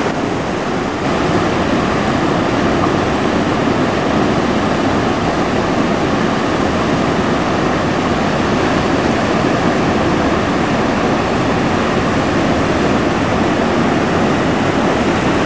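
Foaming water pours from a concrete culvert and splashes across the channel floor.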